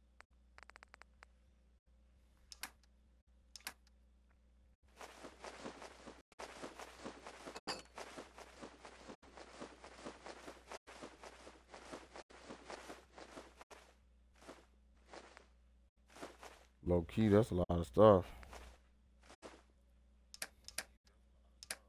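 Soft interface clicks tick now and then.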